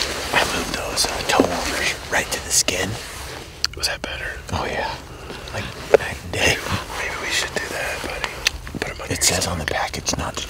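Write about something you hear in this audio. A bearded man answers calmly up close.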